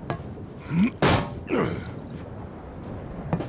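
Heavy boots land with a loud clang on a metal grating.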